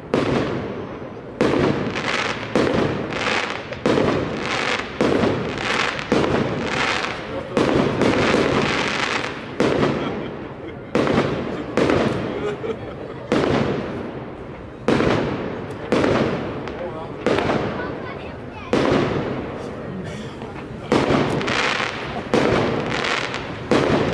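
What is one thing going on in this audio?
Fireworks burst with loud booms that echo between buildings.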